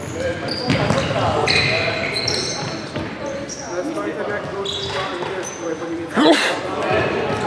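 A futsal ball is kicked with a thud.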